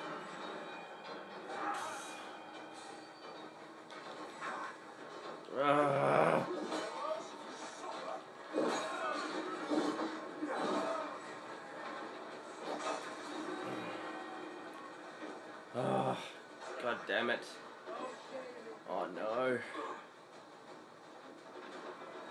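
Battle sounds and clashing play from a television's speakers in a room.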